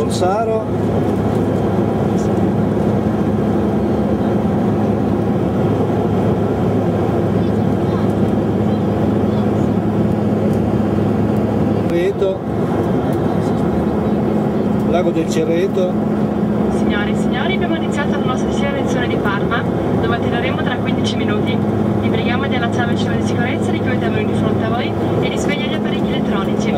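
An aircraft engine drones steadily with a loud, low hum.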